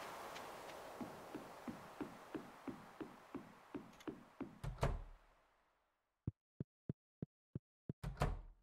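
Footsteps thud on wooden boards at a steady pace.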